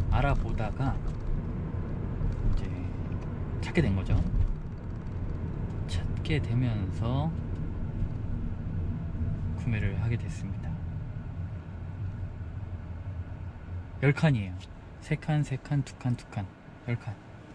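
Tyres roll steadily on the road inside a moving car.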